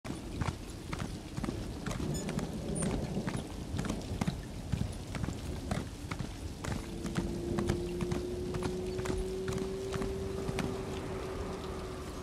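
A horse's hooves clop steadily on a stone path.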